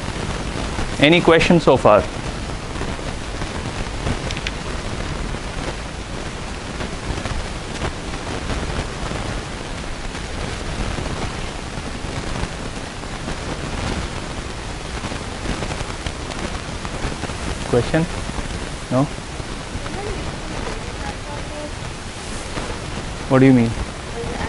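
A man speaks calmly in short bursts, heard from a distance in a large room.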